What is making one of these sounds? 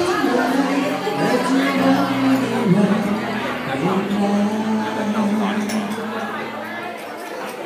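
A young man sings slow held notes into a microphone over loudspeakers.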